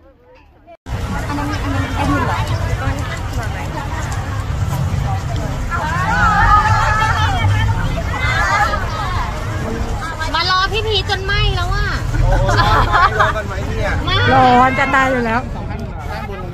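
A crowd of young women cheers and screams nearby.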